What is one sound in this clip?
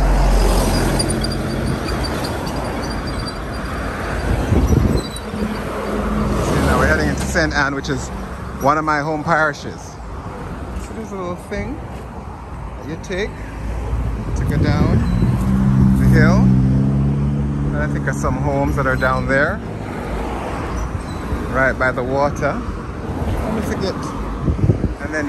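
Cars drive past on a nearby road with a steady rush.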